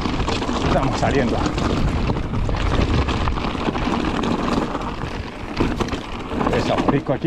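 Wind rushes past outdoors.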